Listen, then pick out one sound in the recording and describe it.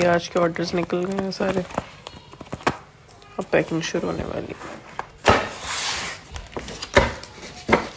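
Paper sheets flutter as they are leafed through.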